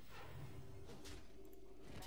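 A magical blast crashes.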